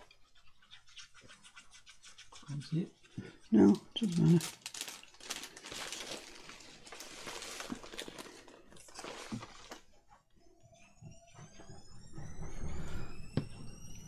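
A plastic glue bottle squeaks as it is squeezed.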